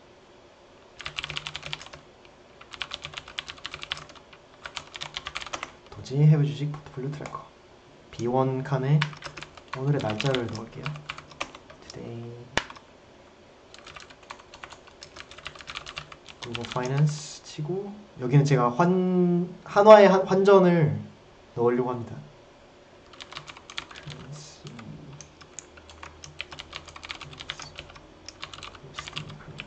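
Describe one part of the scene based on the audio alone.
Keyboard keys clatter quickly in bursts.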